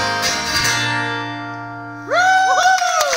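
A man strums a final chord on an acoustic guitar that rings out and fades.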